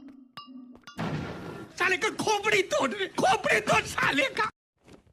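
A middle-aged man laughs loudly and heartily.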